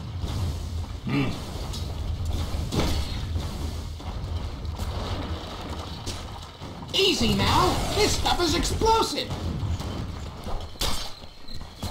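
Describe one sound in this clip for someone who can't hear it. Fantasy battle effects whoosh and crackle as spells are cast.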